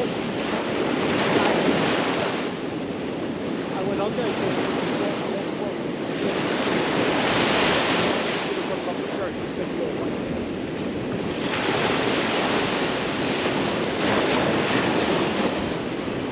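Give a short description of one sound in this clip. Small waves break and wash onto a sandy shore in surges.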